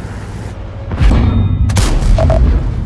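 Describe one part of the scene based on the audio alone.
A heavy shell strikes with a loud, booming crash.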